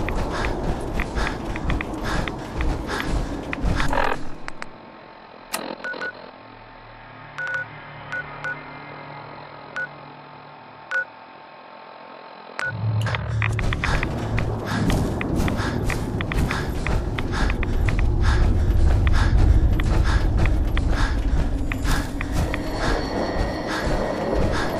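Heavy metal footsteps thud and clank steadily.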